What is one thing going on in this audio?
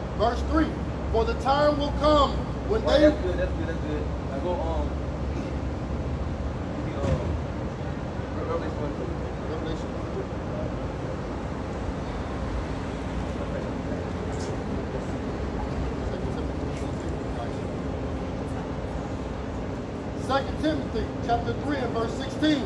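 A man speaks calmly nearby, outdoors.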